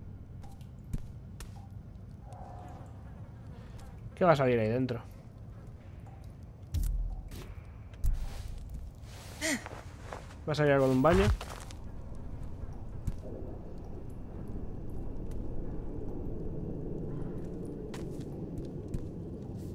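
Footsteps crunch slowly on a gritty floor.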